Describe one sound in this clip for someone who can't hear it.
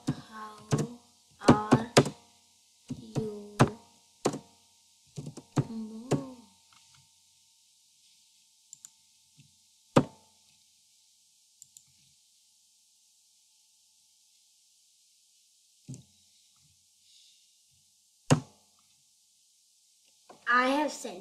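A boy talks close to a computer microphone.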